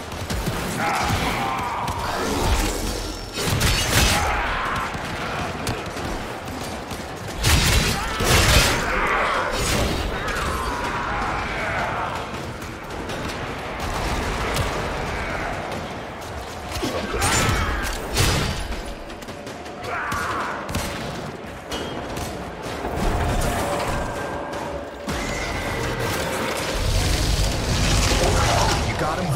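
Gunshots and blasts ring out in quick bursts.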